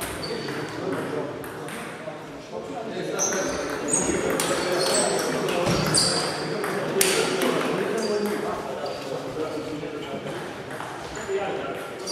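Ping-pong balls click against paddles and tables in a large echoing hall.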